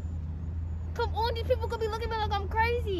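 A young woman talks with animation nearby, outdoors.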